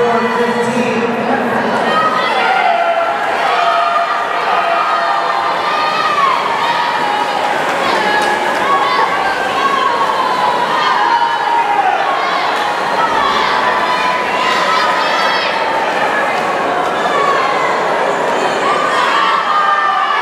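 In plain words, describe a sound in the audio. Swimmers splash through the water swimming butterfly.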